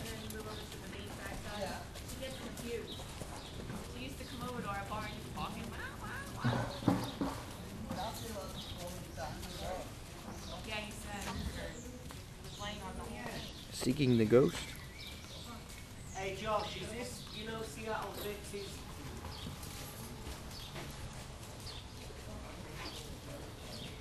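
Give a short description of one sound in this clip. A horse's hooves thud softly on dirt.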